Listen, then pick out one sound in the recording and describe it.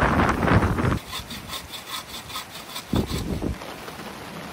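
A bow saw rasps back and forth through wood.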